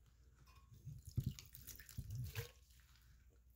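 Soft, wet pieces drop with dull thuds into a glass jug.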